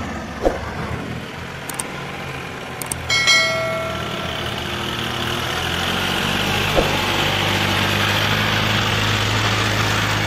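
Tractor tyres churn through mud and water.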